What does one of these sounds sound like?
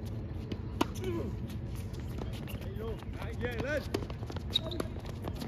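A ball is hit back and forth on an outdoor court.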